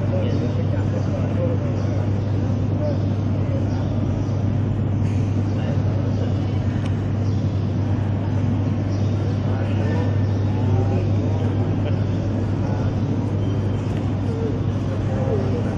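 A crowd of men and women murmurs quietly in an echoing hall.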